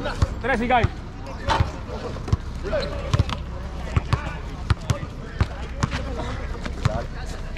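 A basketball bounces repeatedly on a hard outdoor court.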